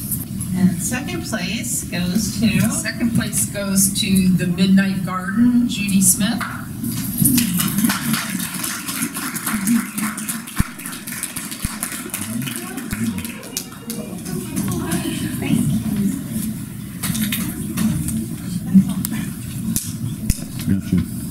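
A woman speaks with animation to a small group.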